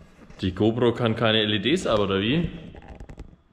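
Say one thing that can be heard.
A young man speaks close to the microphone with animation.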